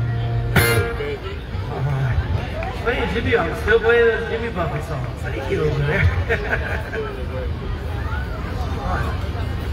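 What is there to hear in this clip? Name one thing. A middle-aged man talks casually into a microphone, heard through a loudspeaker.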